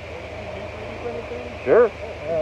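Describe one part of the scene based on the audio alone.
A man talks nearby outdoors.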